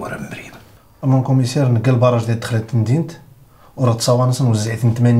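A man speaks firmly and steadily nearby.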